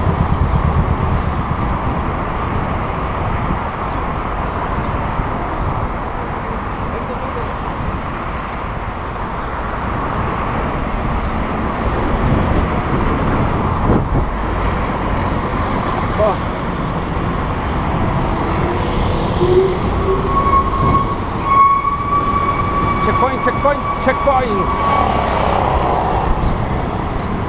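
Cars drive by on a busy road.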